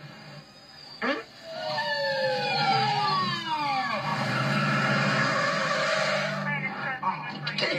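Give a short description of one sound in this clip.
A siren wails, its pitch sliding up and down.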